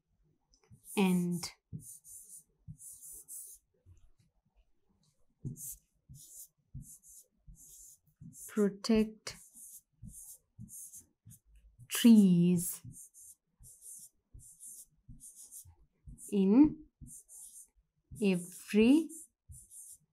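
A woman speaks slowly and clearly, dictating in short phrases.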